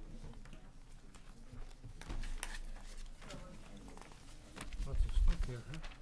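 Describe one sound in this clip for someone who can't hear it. Papers rustle.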